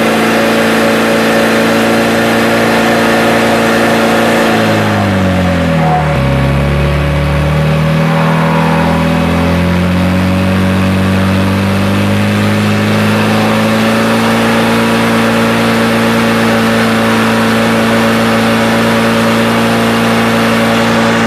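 A pump engine runs loudly close by, dropping in pitch and then slowly revving back up.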